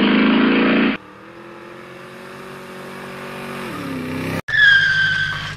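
A motorcycle passes by on the road.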